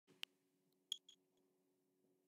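A game console menu plays a short, bright electronic blip.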